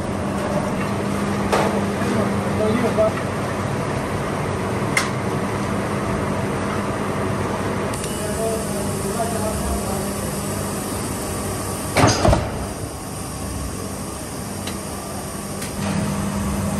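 Heavy factory machinery hums steadily.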